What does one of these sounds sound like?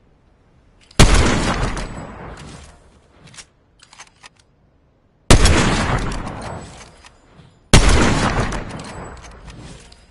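Sniper rifle shots crack loudly and echo away.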